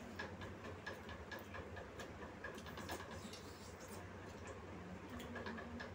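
Spoons clink against steel plates.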